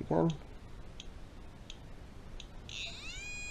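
An electronic leak detector ticks with quick, faint clicks.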